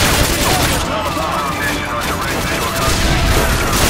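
Rapid gunfire rattles and echoes in a large hall.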